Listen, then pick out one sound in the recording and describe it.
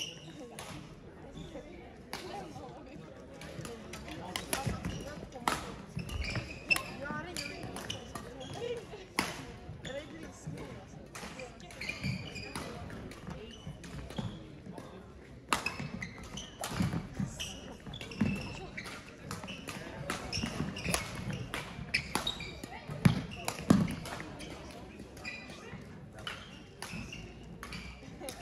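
Sneakers squeak and thump on a hard floor.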